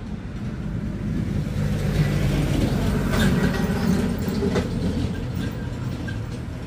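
A heavy truck rumbles past on a road.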